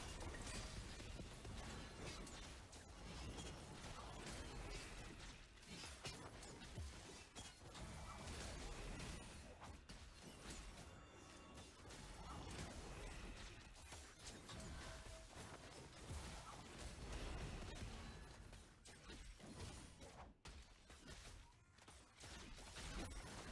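Game combat sounds clash and burst with spell effects.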